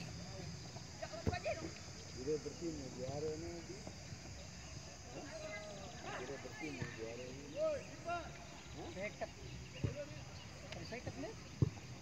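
Young players shout to each other across an open field, at a distance.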